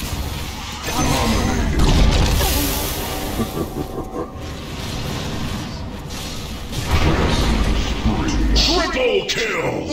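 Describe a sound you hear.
Magical blasts whoosh and boom in a fight.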